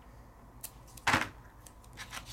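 Adhesive tape tears off a roll with a short rip.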